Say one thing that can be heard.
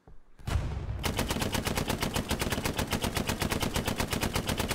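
A machine gun fires in a long, rapid burst.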